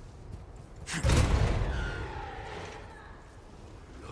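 A heavy metal door scrapes and grinds open.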